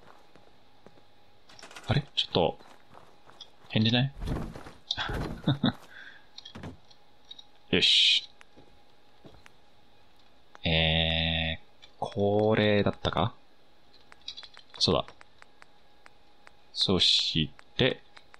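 Short electronic interface blips sound as menu choices change.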